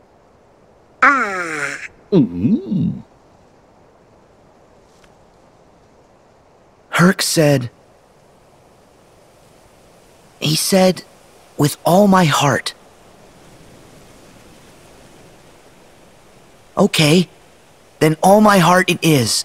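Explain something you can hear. A young man speaks earnestly, in short bursts.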